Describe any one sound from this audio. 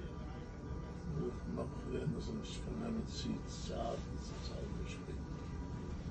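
A young boy speaks quietly nearby.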